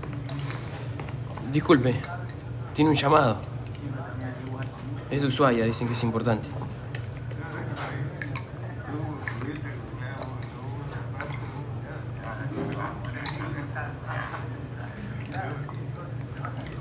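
Several people chatter quietly in the background.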